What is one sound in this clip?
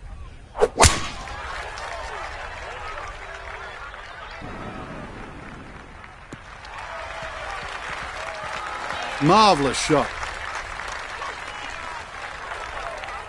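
A crowd cheers and murmurs.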